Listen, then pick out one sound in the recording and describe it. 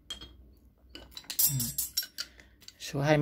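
Metal tools clatter as a heavy wrench is picked up.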